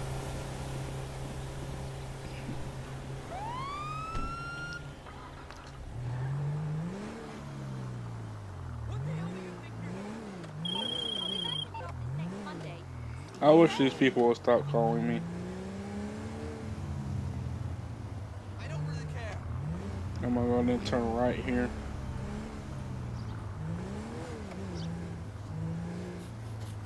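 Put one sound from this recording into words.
A car engine idles and then revs up and down.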